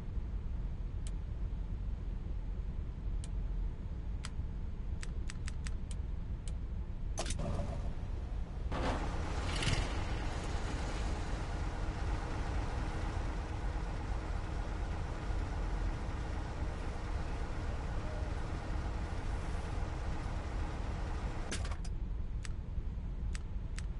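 Short game menu clicks tick now and then.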